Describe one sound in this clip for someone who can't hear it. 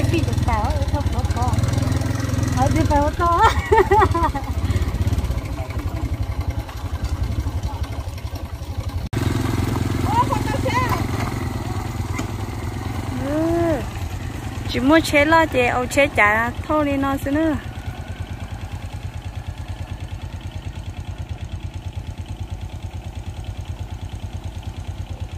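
A motorcycle engine runs as the motorcycle is ridden.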